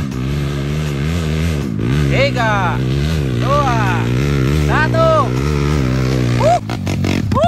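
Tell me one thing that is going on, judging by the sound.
A dirt bike engine drones steadily and revs in bursts as it climbs closer.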